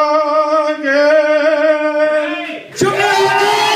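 An elderly man sings a long held note into a microphone.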